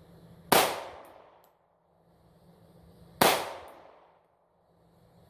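A handgun fires two loud shots outdoors, each echoing away among trees.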